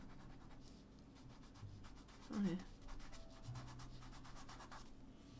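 A pastel stick scratches softly across paper.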